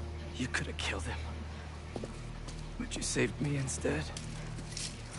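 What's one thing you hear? A man answers accusingly.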